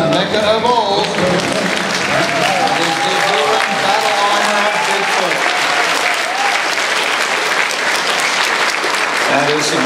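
An audience cheers and whoops.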